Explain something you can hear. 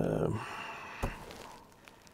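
Hands shift a small metal box with a soft knock.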